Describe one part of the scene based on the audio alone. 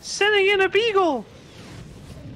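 A man shouts loudly in a high, wavering voice through a microphone.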